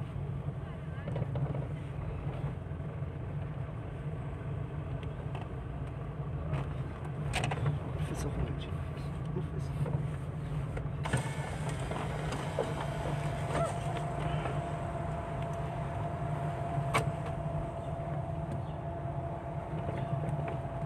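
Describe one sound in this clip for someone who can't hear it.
A car engine hums steadily from inside the car as it drives along a street.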